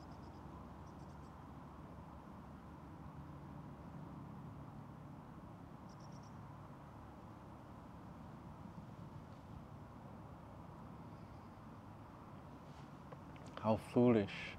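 Wind rustles softly outdoors.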